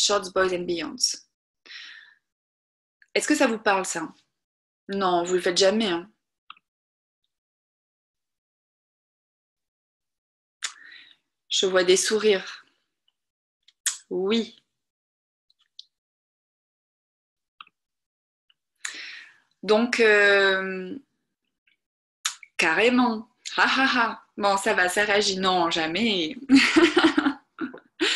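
A young woman talks calmly over an online call, with pauses.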